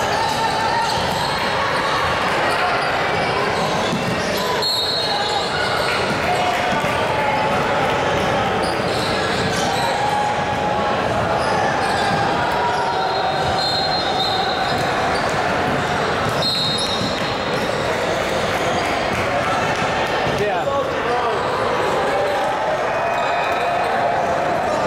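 Spectators and players chatter in a large echoing gym.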